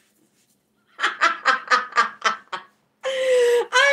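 A young woman laughs loudly in bursts.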